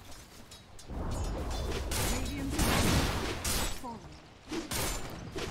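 Fantasy game combat sounds clash and burst with magic impacts.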